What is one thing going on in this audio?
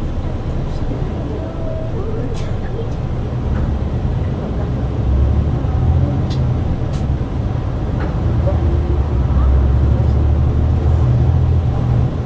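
The bus rattles and creaks as it drives along.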